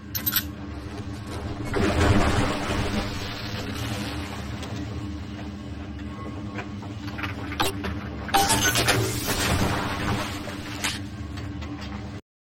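Electricity crackles and buzzes steadily.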